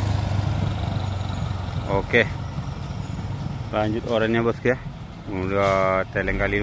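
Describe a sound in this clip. Motorcycle engines putter past at low speed.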